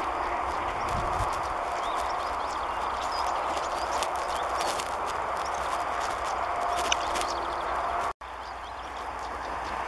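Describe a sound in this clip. A small bird sings in short high chirps outdoors.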